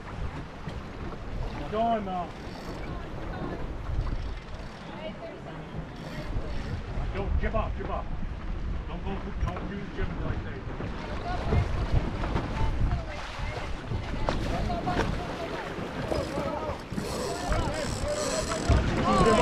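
Waves slap and splash against a boat's hull.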